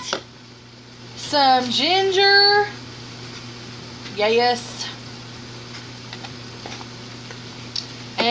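Hands rub and crumble food.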